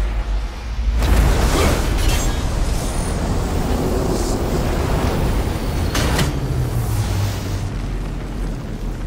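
A swirling rush of magical energy roars steadily.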